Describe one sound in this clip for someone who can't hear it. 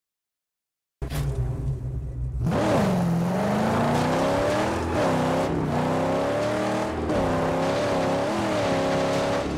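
A car engine roars and revs as the car drives.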